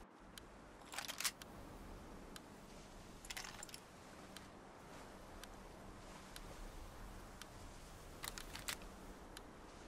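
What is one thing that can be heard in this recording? A menu gives short soft clicks now and then.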